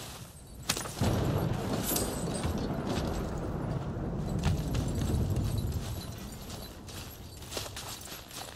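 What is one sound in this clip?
Wind blows with a low, steady roar.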